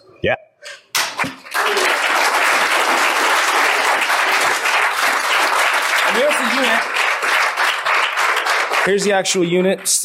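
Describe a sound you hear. A crowd applauds and cheers loudly in a large room.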